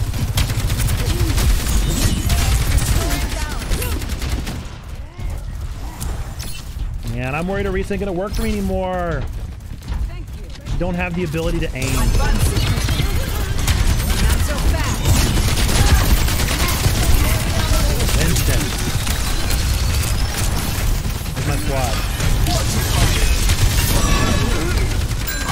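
Game weapons fire in rapid bursts with loud zaps and blasts.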